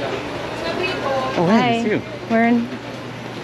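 A woman speaks close by, cheerfully.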